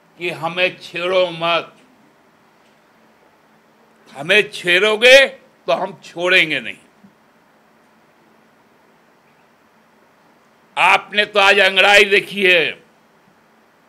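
A middle-aged man speaks emphatically into microphones, in short bursts with pauses.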